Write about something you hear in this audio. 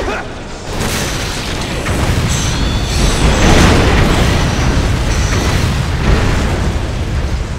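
A fiery explosion roars and rumbles.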